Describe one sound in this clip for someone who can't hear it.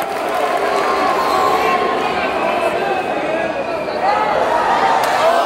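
A large crowd cheers and shouts loudly in an echoing arena.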